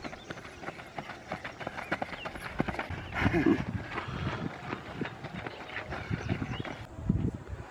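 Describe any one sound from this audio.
Runners' feet crunch on a gravel road.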